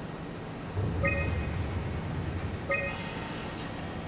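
A console gives short electronic beeps.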